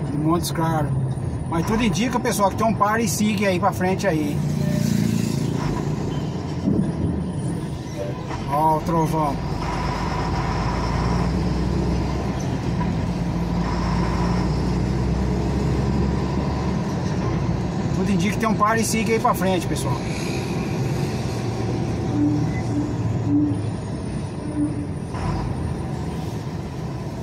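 Tyres roll steadily on asphalt.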